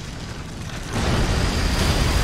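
Flames burst and roar.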